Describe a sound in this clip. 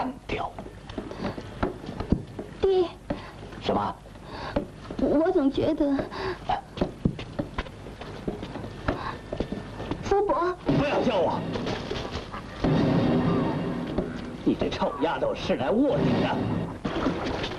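A man speaks sharply.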